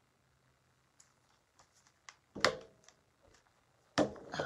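A plastic case clicks and clatters on a table.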